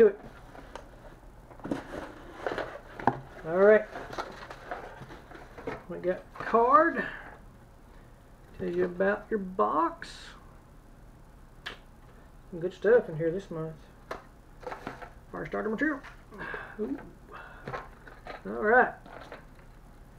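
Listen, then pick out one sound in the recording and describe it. Cardboard and paper rustle as a box is unpacked.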